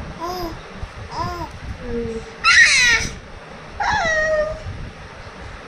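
A baby coos and squeals close by.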